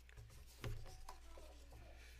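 Paper rustles as a man turns pages.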